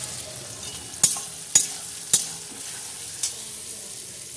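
A metal spatula clanks against a pan.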